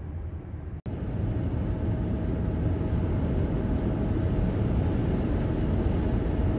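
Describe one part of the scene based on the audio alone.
A car engine rumbles steadily with road noise from inside the car.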